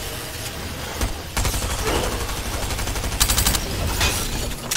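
Game gunshots crack in rapid bursts.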